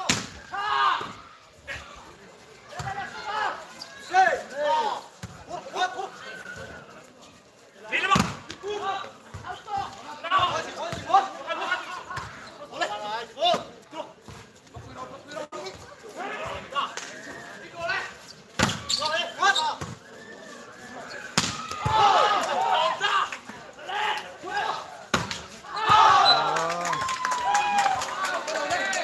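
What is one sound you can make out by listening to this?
Men shout and cheer outdoors.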